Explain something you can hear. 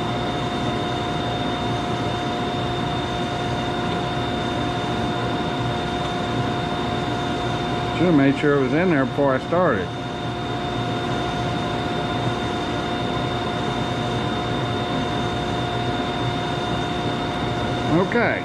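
A band saw motor hums steadily.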